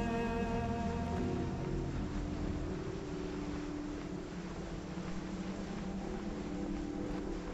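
Sand hisses softly as something slides steadily down a dune.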